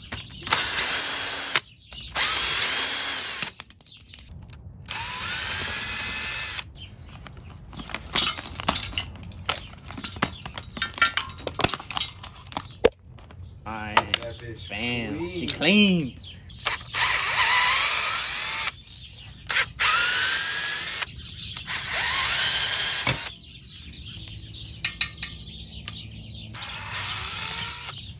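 A cordless drill whirs in short bursts as it drives screws.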